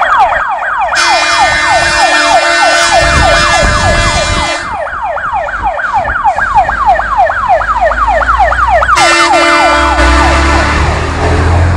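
A fire engine horn blares in long blasts.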